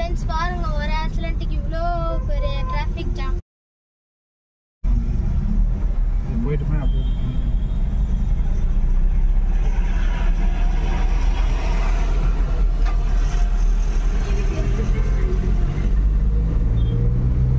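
Trucks and cars rumble past close by.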